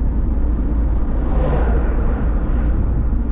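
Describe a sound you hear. A truck rushes past in the opposite direction.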